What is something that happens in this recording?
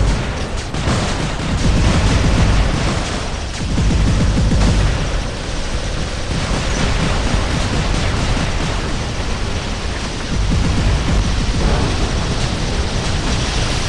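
Heavy mechanical footsteps thud and clank.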